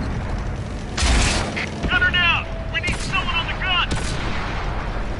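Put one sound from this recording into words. A tank gun fires with a loud bang.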